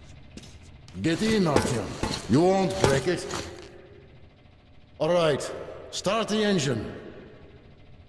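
A man speaks loudly and urgently nearby.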